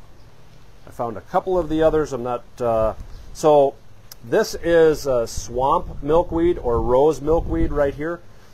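A man talks calmly and clearly into a close microphone.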